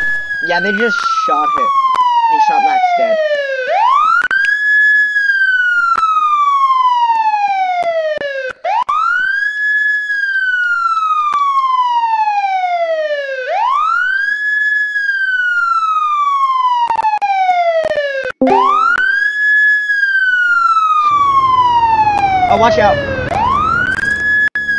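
A siren wails, rising quickly and falling slowly, over and over.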